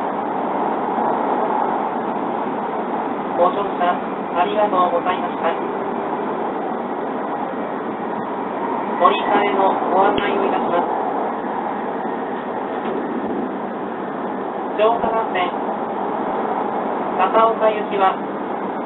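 A vehicle rumbles steadily as it travels.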